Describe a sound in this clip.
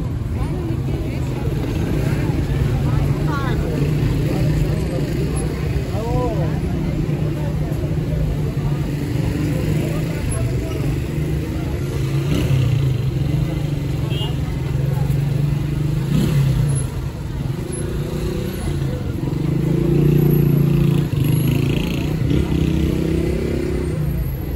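A busy street murmurs with traffic and a crowd outdoors.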